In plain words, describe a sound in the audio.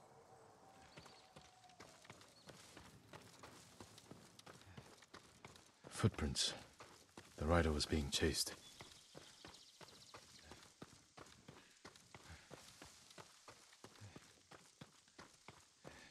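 Quick footsteps run over rustling leaves.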